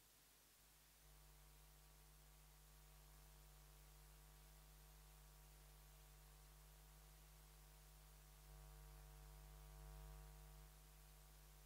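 A guitar plays soft, long-held notes through loudspeakers in a large hall.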